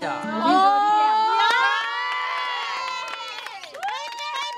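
A group of young women and men sing together loudly.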